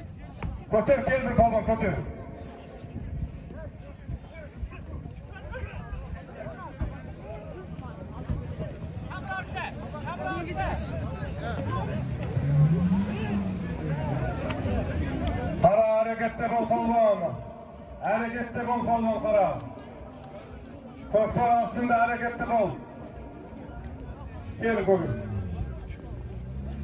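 Men shout loudly among the horses, heard close by.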